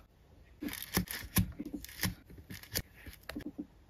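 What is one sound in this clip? Fingernails tap lightly on plastic.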